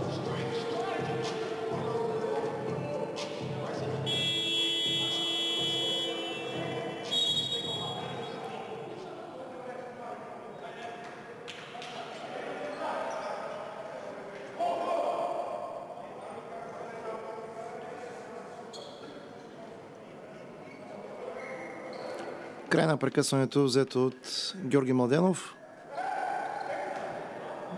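Spectators murmur in an echoing hall.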